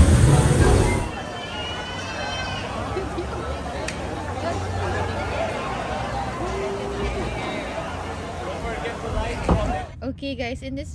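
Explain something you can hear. A crowd chatters in the background outdoors.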